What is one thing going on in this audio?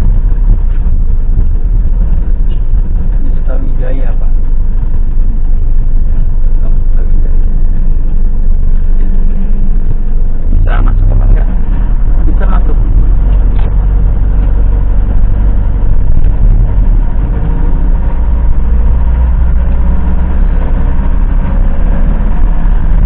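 A vehicle's engine rumbles steadily as it drives.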